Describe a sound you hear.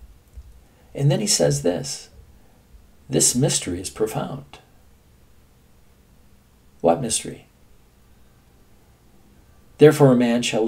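An elderly man talks calmly and close to the microphone, with pauses.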